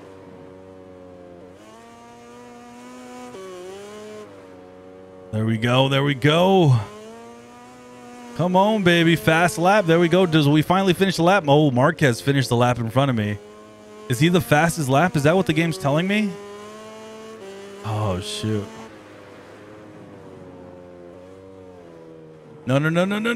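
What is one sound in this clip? A racing motorbike engine drones and shifts in pitch.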